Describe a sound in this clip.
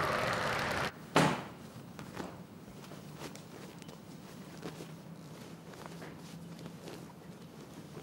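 A boy rustles a coat as he puts it on.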